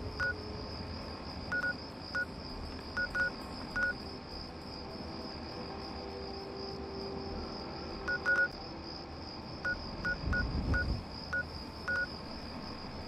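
Short electronic beeps chirp quickly from a game menu.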